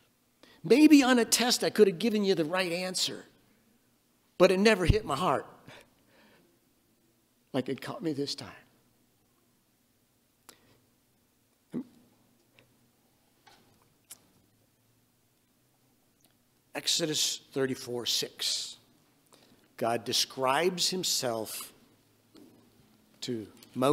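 An elderly man preaches with animation through a microphone, pausing between phrases.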